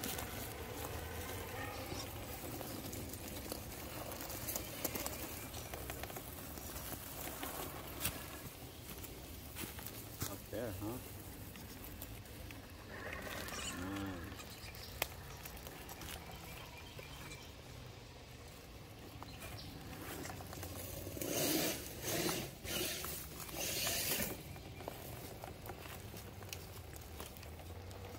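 A small electric motor whines as a toy truck crawls over rocks.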